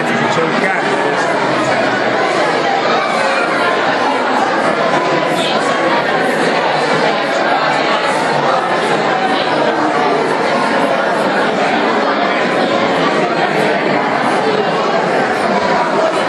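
A large crowd of men and women chatters loudly in a big echoing hall.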